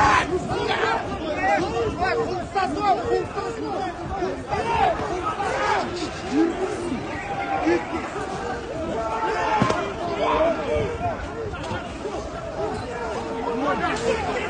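A crowd of men shouts and clamours outdoors.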